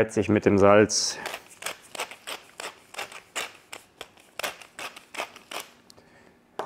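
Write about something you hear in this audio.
A pepper mill grinds with quick, rapid clicks.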